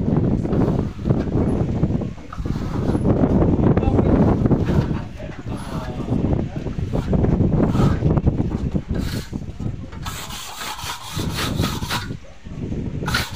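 A trowel scrapes wet plaster across a wall.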